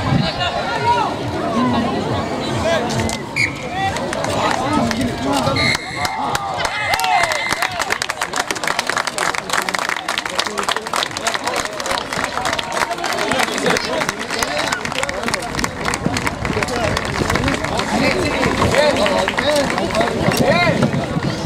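A crowd of spectators chatters and calls out close by, outdoors.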